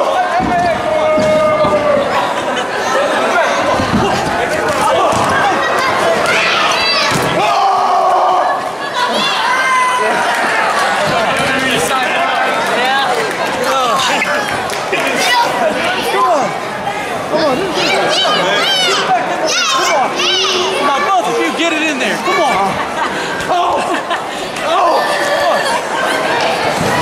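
A crowd of men and women cheers and shouts loudly in an echoing hall.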